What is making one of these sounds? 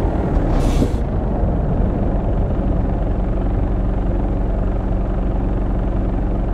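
A truck engine idles lower and quieter after stopping.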